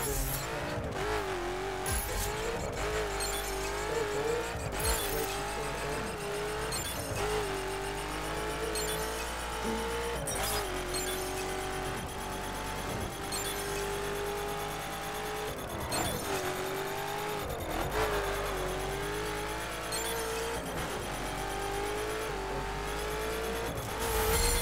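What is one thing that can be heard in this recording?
A sports car engine roars at high speed, rising and falling in pitch as the gears shift.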